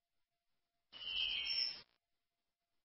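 A short bright chime rings.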